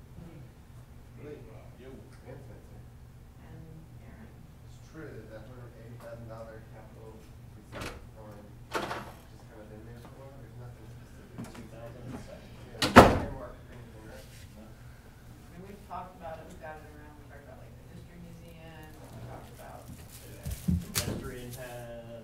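A man speaks calmly through a microphone in a slightly echoing room.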